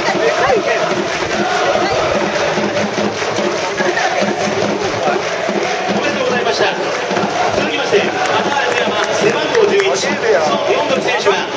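Many voices sing together in the stands.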